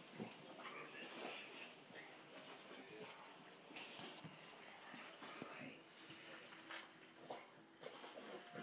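A puppy wriggles and rubs its back on a carpet.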